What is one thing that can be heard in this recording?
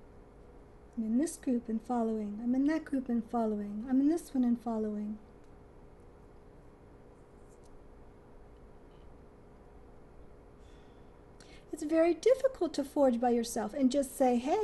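A middle-aged woman speaks calmly and close by, pausing in between.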